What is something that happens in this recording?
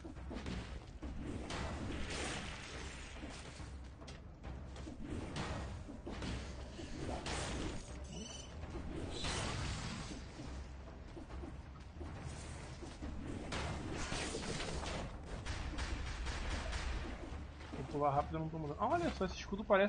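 Sword slashes and hits ring out in quick bursts.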